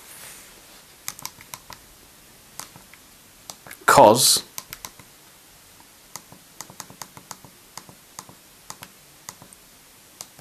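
Phone keys click softly as they are pressed.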